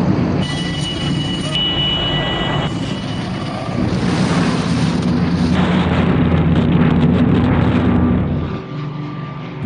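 Wind rushes and buffets loudly.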